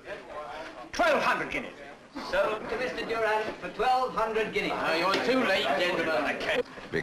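A crowd of men chatters loudly.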